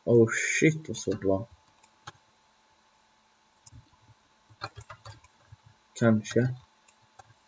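A boy speaks with animation close to a microphone.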